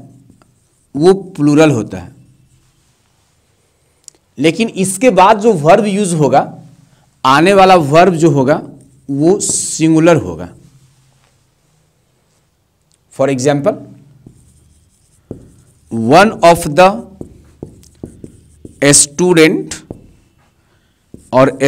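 A man talks calmly and clearly, as if teaching.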